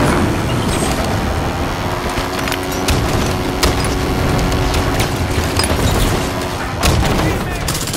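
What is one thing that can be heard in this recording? A vehicle engine roars and rattles.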